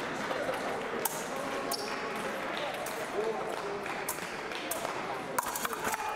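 Blades click and clash together.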